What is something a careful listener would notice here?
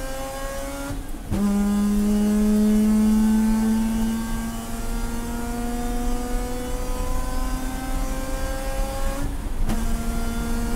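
A race car engine briefly cuts out and drops in pitch as the driver shifts gears.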